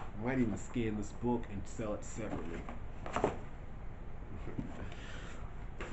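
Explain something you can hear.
Paper packaging rustles and crinkles in a man's hands.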